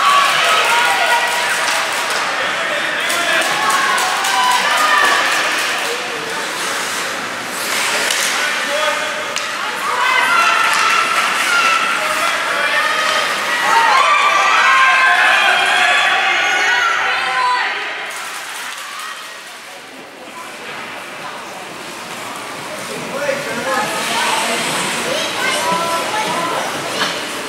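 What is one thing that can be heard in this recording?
Spectators chatter and call out close by in an echoing hall.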